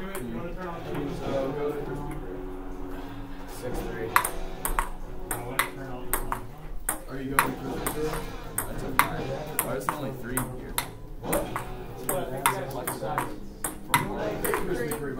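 Teenage boys talk and call out nearby in a room.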